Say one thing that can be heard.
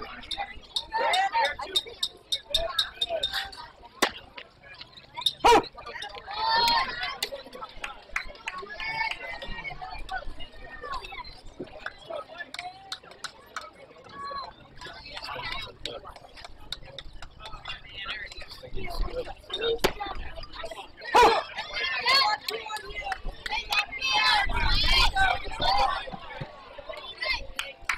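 Young players shout and chatter from around an open field.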